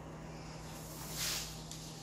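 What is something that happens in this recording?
A sheet of paper rustles as it is handled.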